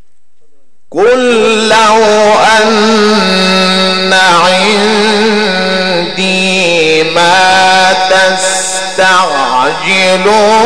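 A man chants in a long, melodic voice through a microphone and loudspeakers, in a large echoing space.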